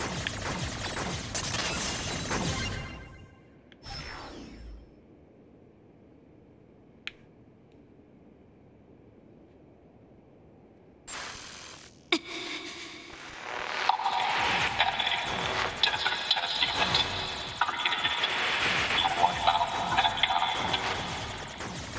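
Small explosions pop and burst in a video game.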